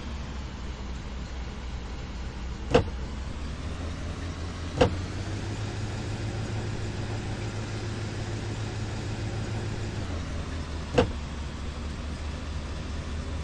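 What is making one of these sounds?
A car engine rumbles steadily at low speed.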